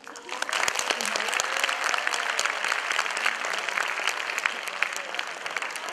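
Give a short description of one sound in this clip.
A woman laughs into a microphone.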